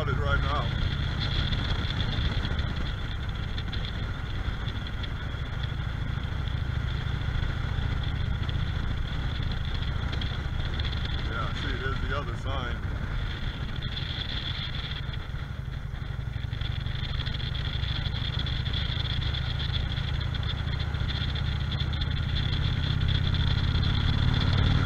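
Tyres roll over asphalt with a steady rumble.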